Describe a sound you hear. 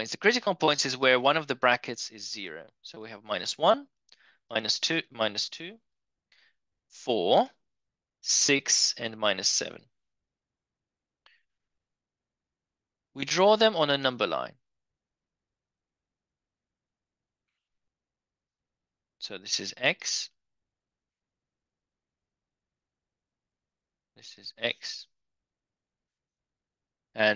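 A man speaks calmly through a microphone, explaining in short bursts with pauses.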